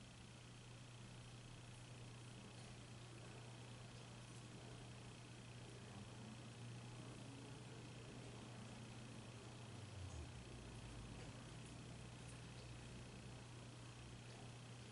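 A crochet hook clicks and rustles through yarn.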